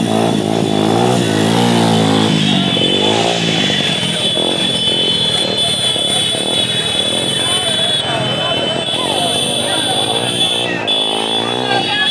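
Motorcycle engines rumble and idle nearby.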